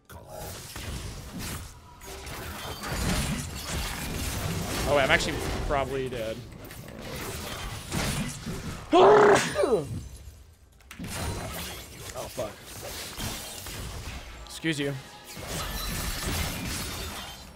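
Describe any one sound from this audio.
Game combat effects clash and crackle.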